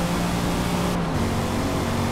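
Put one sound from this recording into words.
A car engine shifts up a gear with a sudden drop in pitch.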